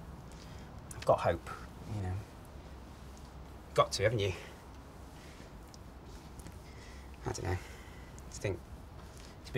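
A young man speaks casually in short bursts, close by.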